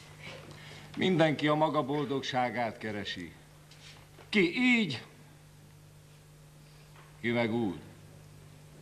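A man speaks close by in short, emotional phrases with pauses between them.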